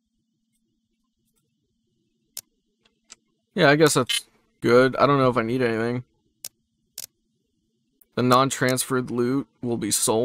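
Short game menu clicks sound as options are selected.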